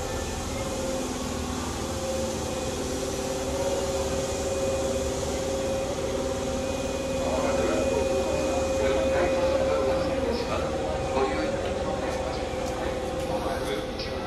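Footsteps tap and shuffle on a hard floor.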